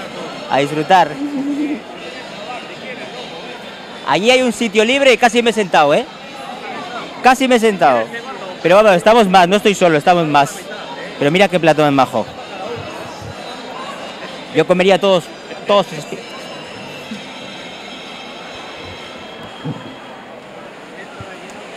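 A large crowd chatters steadily in the background.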